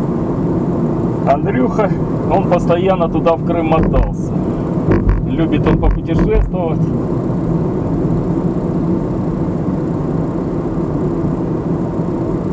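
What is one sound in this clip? A car engine hums and tyres roll steadily on a paved road.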